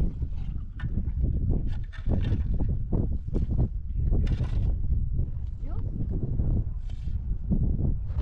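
A shovel scrapes and digs into dry, stony soil.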